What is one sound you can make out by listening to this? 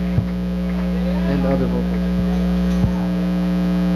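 A drum is struck lightly a few times.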